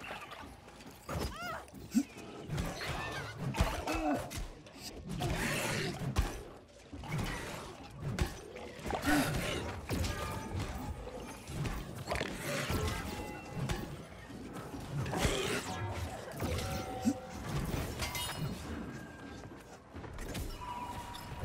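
Sword blows and magic blasts crash in quick bursts.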